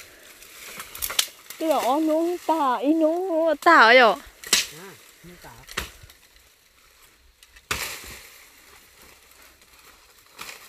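Dry bamboo stalks crack and rustle close by.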